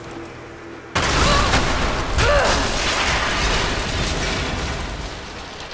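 Wooden planks crash and collapse with a loud rumble.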